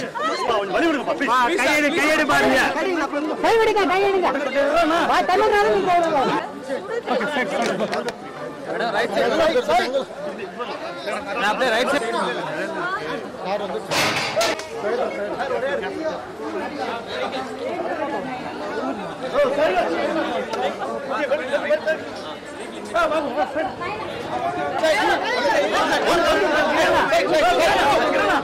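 A crowd of people talk and call out all around, close by.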